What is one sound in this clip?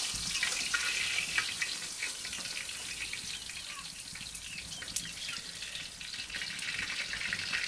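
A woman pats and presses bread dough on a cloth.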